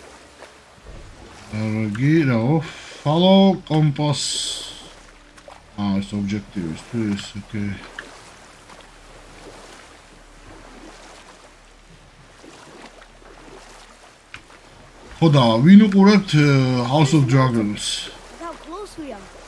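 Oars dip and splash in water.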